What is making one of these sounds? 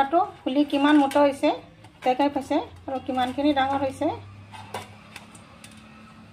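A piece of fried bread rubs and taps on a metal plate.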